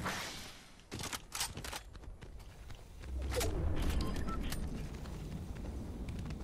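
Footsteps patter quickly across hard ground.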